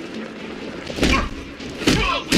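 A heavy body lands with a loud thud on a metal floor.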